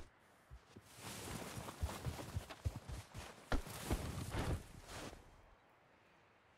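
A heavy body drags through snow with a soft scraping hiss.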